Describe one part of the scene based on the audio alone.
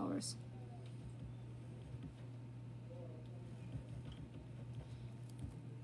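A felt-tip marker squeaks and scratches on paper.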